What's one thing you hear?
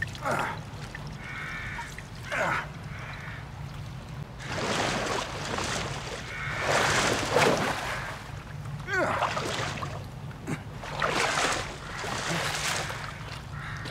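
Water splashes and sloshes as a man wades through it.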